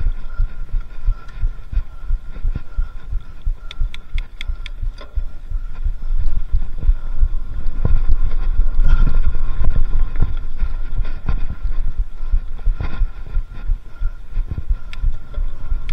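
Wind buffets a microphone.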